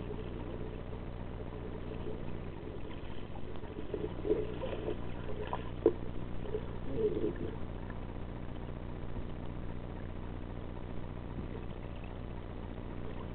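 A low, muffled underwater rumble goes on steadily.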